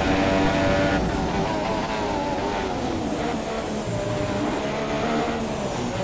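A racing car engine drops in pitch as the car brakes and shifts down.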